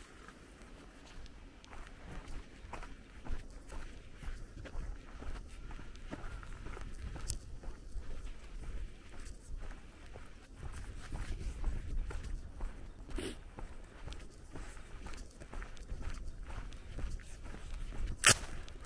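Footsteps crunch steadily on a paved road.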